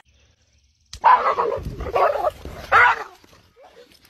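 Dogs bark excitedly.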